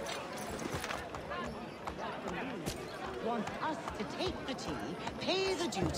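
A horse's hooves clop on cobblestones.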